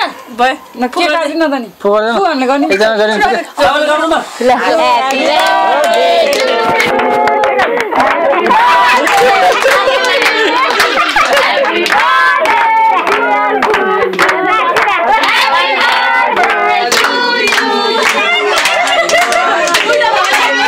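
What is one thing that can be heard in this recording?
A group of women sing together indoors.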